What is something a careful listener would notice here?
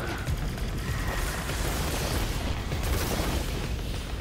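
A heavy gun fires rapid rounds.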